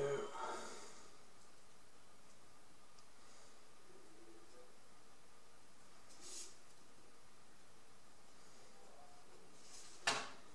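A thin wooden stick scrapes and taps lightly against wood.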